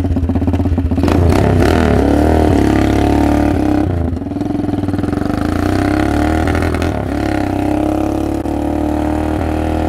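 A single-cylinder four-stroke minibike engine revs as the bike pulls away and rides off.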